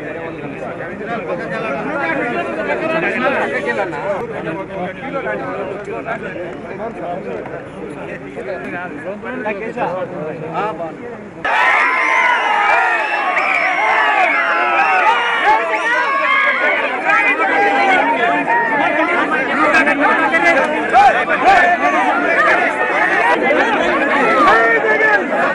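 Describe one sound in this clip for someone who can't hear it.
A large crowd of men and women shouts and chatters excitedly close by.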